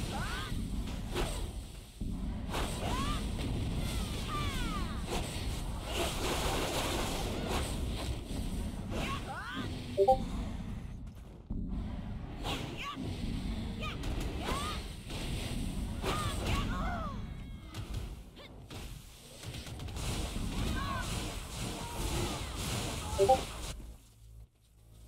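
Magic blasts whoosh and crash in quick bursts.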